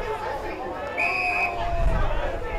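A referee's whistle blows one short blast.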